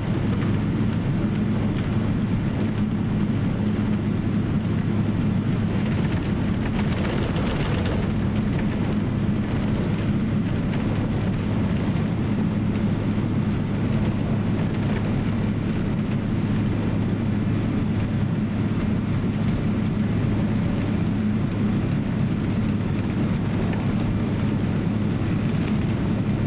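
Tyres rumble on a wet runway as a plane taxis.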